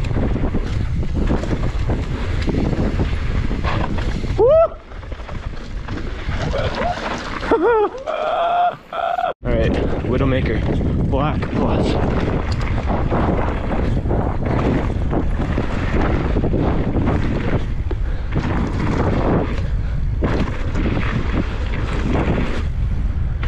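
Bike tyres crunch and rattle over loose gravel and rocks.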